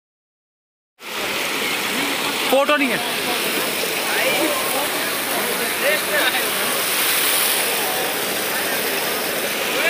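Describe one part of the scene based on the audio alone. Water rushes over rocks in a stream.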